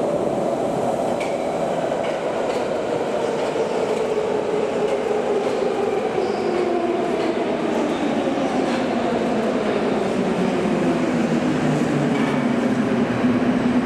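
A train's motor whines, falling in pitch as it slows to a stop.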